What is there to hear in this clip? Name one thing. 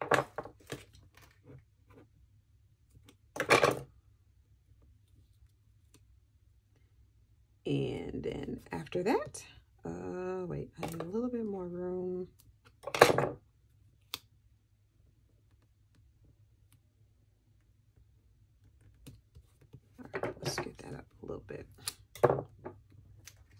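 Items knock and clack on a wooden table.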